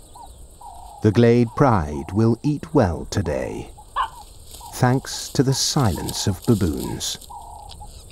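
A lioness growls and snarls close by.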